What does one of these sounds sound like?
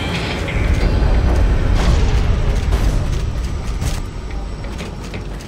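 Heavy metal footsteps clank on a metal floor.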